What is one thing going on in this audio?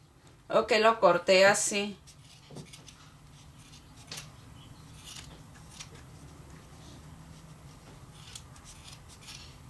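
Scissors snip through yarn.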